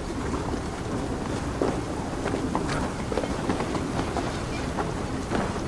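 Footsteps thud across a wooden bridge.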